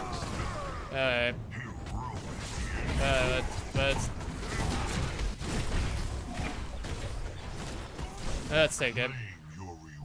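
Metal weapons clash and strike.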